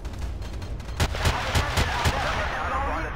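A rifle fires several sharp shots in quick succession.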